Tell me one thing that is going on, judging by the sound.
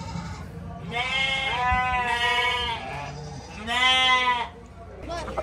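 Goats bleat loudly and close by.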